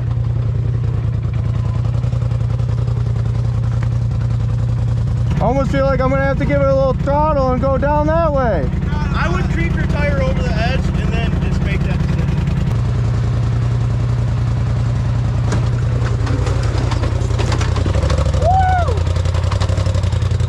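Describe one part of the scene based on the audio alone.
Tyres grind and crunch over rocks.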